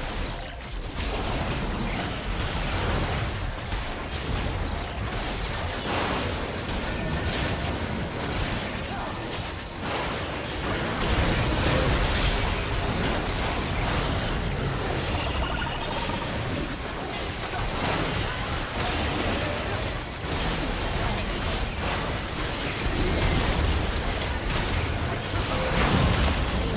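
Fantasy battle sound effects crash and boom as spells are cast.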